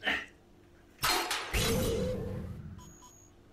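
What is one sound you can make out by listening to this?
A glassy body shatters into pieces with a loud crash.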